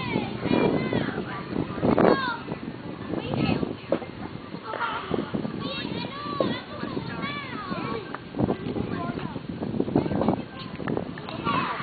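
Several young women chat in a group outdoors.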